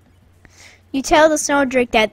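A boy speaks with animation close to a microphone.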